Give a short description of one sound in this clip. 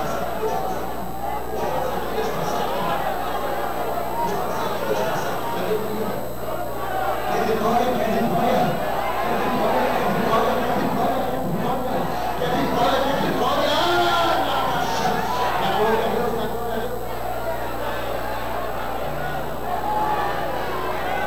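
A large crowd prays aloud together in an echoing hall.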